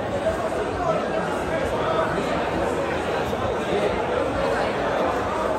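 A large crowd murmurs and chatters nearby.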